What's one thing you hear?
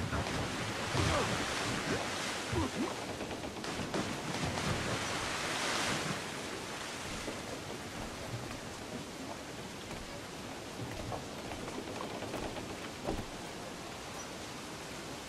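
Waves wash and splash against a wooden ship.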